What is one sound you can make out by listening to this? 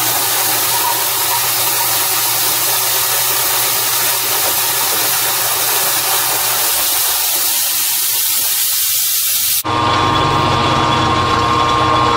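A cutting tool scrapes against spinning metal.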